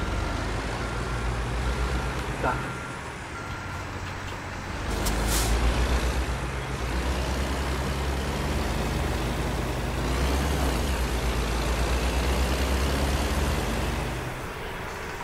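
A truck engine rumbles low and steady, then revs up as the truck drives off.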